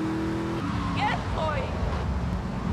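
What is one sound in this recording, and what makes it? Car tyres screech on the road.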